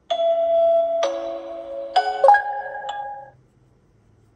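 A short game tune plays from a tablet speaker, then cuts off.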